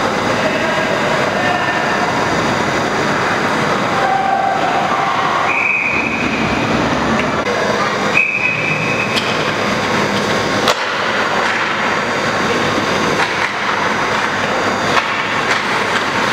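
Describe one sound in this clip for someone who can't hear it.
Ice skates scrape and carve across a rink in a large echoing arena.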